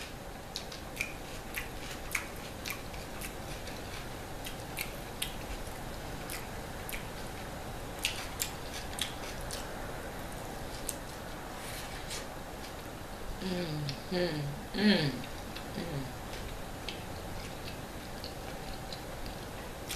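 A woman chews pizza with wet mouth clicks close to a microphone.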